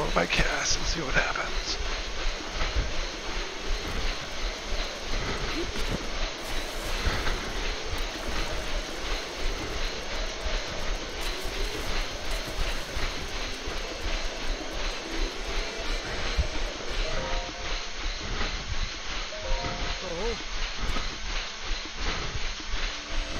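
Footsteps thud steadily on a running treadmill.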